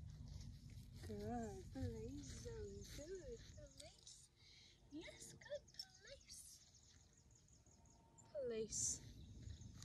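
A young woman speaks to a dog in a high, cheerful voice nearby.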